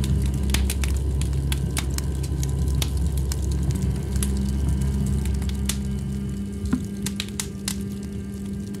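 Electronic music plays with a deep, steady bass drone.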